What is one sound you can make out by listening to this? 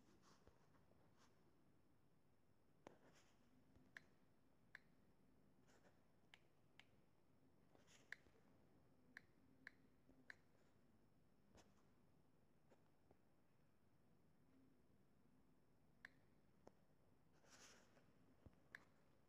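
Keys tap and click on a touchscreen keyboard.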